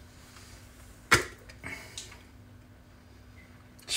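A lid clicks as a jar is unscrewed.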